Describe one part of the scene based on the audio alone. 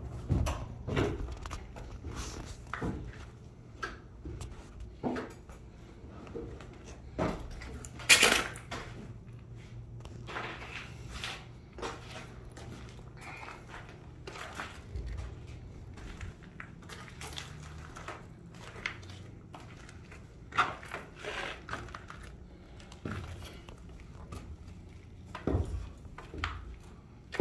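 Footsteps crunch on a gritty floor, with loose debris scraping underfoot.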